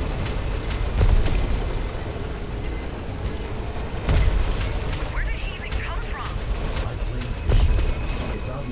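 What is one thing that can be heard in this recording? Heavy crashes boom now and then.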